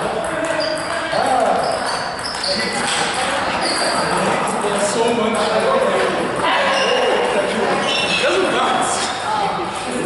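A man talks casually nearby in an echoing room.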